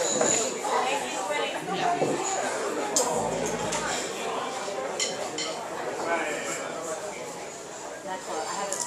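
A teenage band plays rock music.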